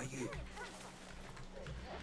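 Leaves rustle as someone pushes through dense bushes.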